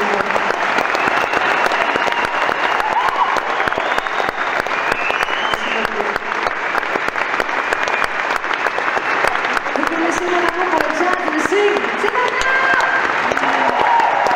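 A live band plays music in a large echoing hall.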